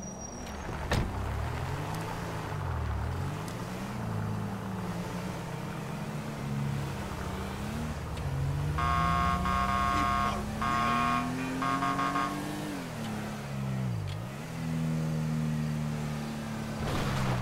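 A car engine revs up and down as the car drives.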